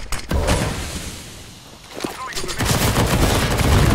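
A loud blast booms and roars.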